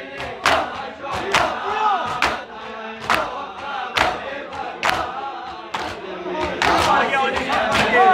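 Men chant together loudly outdoors.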